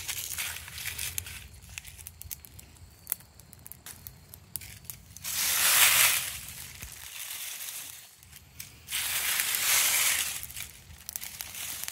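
Dry leaves rustle as a hand rummages through them.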